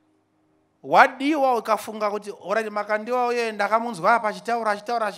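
A man speaks with animation into a microphone through loudspeakers.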